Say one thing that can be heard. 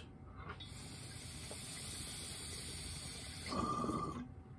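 Water bubbles and gurgles steadily in a water pipe.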